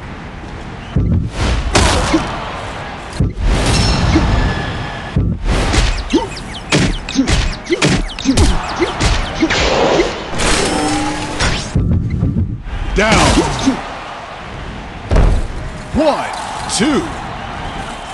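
Punches land with heavy thuds and cracks.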